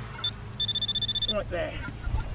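A metal detector gives a steady electronic beep.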